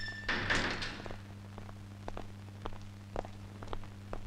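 Footsteps tread on a hard floor.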